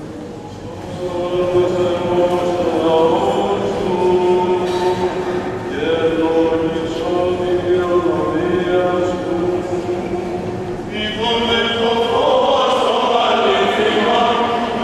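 A choir of men chants in long, drawn-out tones in a large echoing hall.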